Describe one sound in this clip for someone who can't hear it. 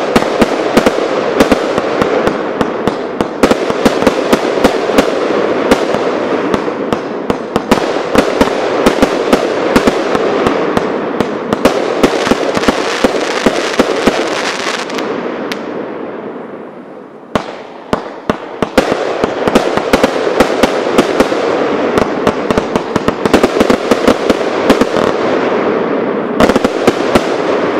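Fireworks burst with rapid loud bangs and crackles.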